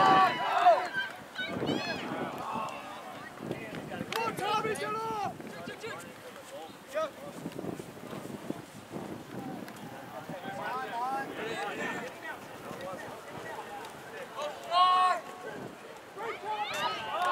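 Young men and boys shout and call out nearby across an open field.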